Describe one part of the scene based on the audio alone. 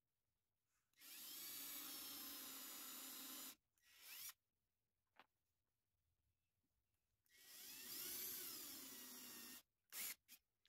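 A cordless drill whirs in short, high bursts.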